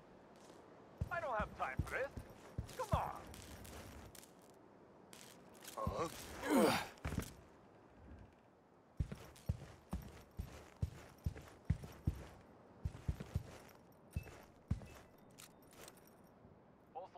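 Footsteps thud on wooden boards at a steady walking pace.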